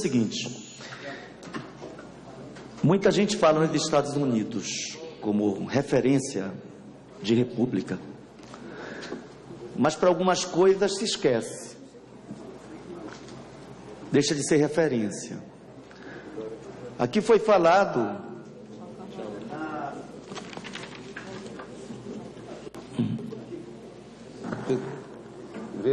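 A middle-aged man speaks forcefully into a microphone.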